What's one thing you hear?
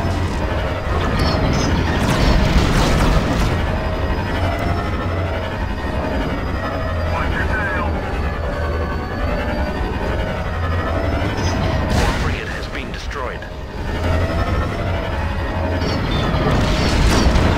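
Laser cannons fire in rapid bursts.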